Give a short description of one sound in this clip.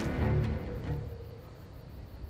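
A magic blast bursts with a sharp whoosh.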